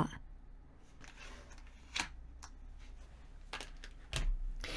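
Cards slide and tap softly on a table.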